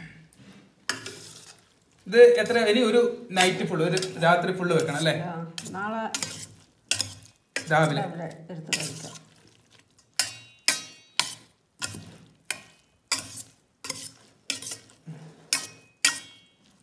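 A metal spoon clinks and scrapes against a steel bowl.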